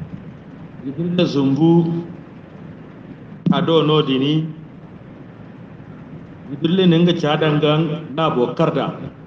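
A man prays aloud in a chanting voice, close by.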